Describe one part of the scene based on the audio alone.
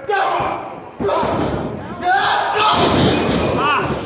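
A wrestler slams onto a ring mat with a heavy thud.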